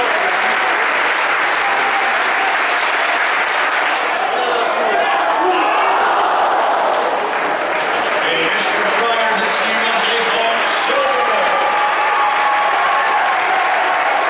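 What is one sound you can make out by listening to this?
A large stadium crowd cheers and roars outdoors.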